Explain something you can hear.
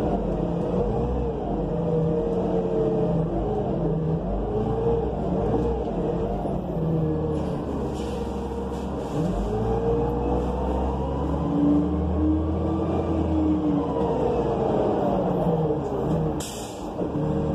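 A bus engine drones and whines, rising and falling in pitch as the bus speeds up and slows down.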